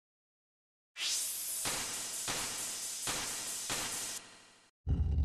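A laser beam hums and crackles.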